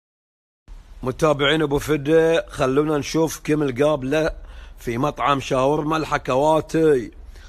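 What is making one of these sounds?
A man talks with animation close to a phone microphone.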